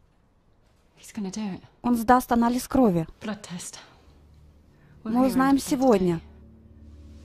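A woman speaks close by in a tense, upset voice.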